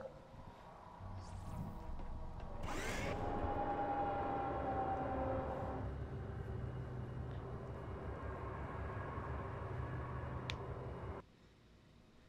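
An elevator hums and rumbles steadily as it rises.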